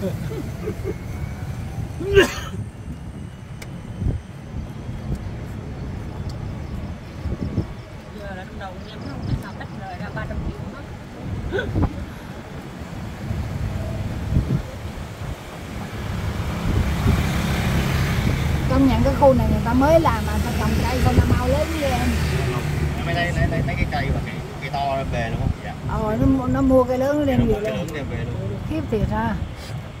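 A vehicle engine rumbles steadily with road noise as it drives along.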